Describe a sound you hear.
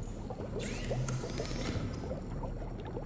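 A mechanical hatch slides open with a soft whirring hiss.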